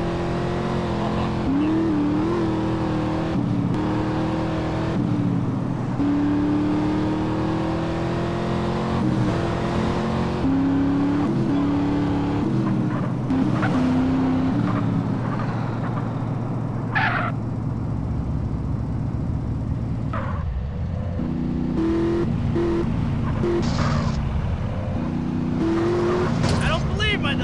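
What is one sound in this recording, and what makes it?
A car engine roars steadily as the car speeds along.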